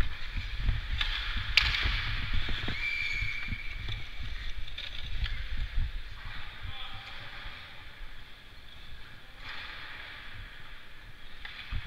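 Hockey sticks clack against a puck on ice.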